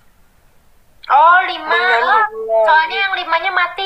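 A young woman sings in a high voice over an online call.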